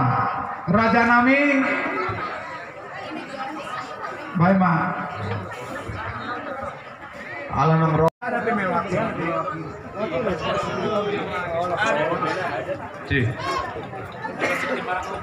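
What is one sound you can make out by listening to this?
A crowd of people chatters nearby.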